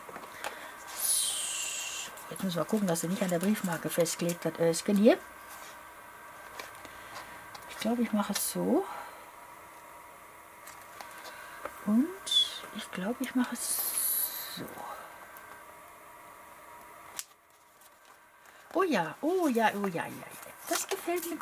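Paper rustles and crinkles as it is handled close by.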